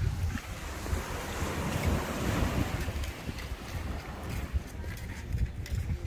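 Waves wash onto a shore.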